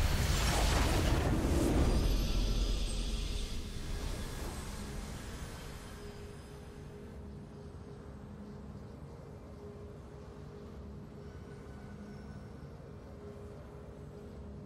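A triumphant game fanfare plays softly.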